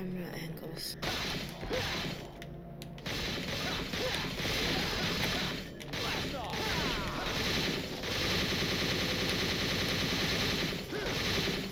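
A sword slashes and clangs against bone.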